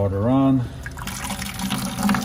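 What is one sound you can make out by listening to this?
Water trickles from a hose into a plastic bucket.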